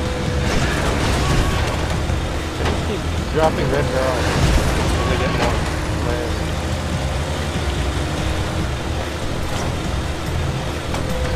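A vehicle engine roars steadily.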